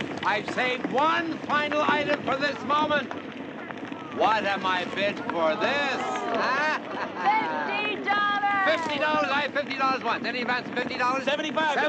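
An older man speaks loudly to a crowd outdoors.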